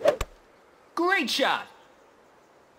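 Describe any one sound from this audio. A golf ball whooshes through the air.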